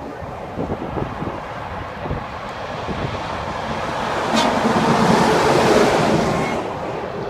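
Traffic hums past on a highway outdoors.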